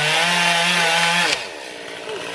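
A chainsaw roars loudly, cutting into a tree trunk.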